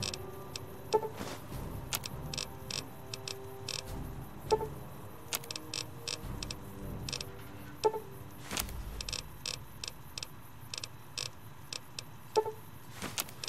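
A metallic chime sounds when a menu opens.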